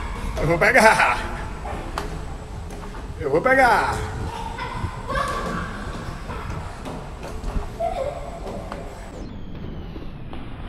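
A young child's feet push off and slap on concrete.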